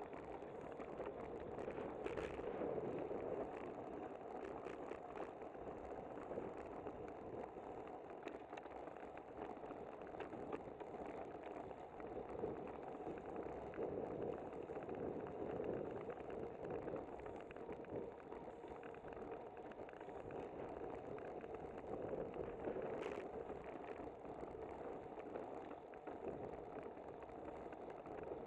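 Wind rushes and buffets steadily past, close up.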